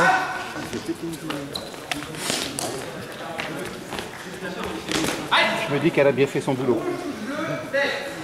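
Swords clash and clatter in a large echoing hall.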